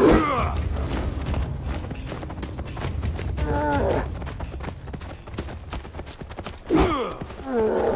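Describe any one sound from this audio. A small animal squeals and growls.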